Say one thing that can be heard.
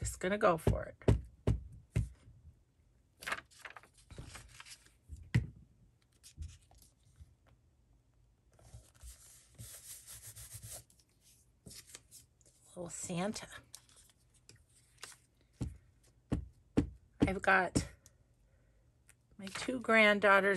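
A glue stick rubs across paper.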